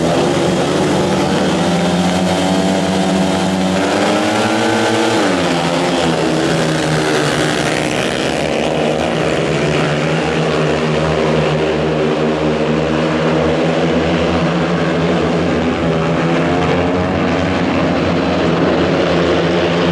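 Motorcycle engines roar loudly, revving up and screaming as the bikes race around a track.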